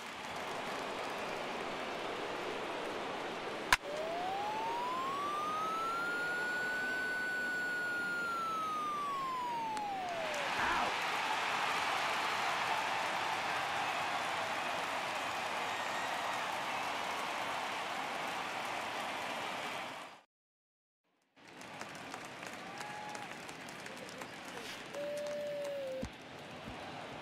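A stadium crowd cheers and murmurs.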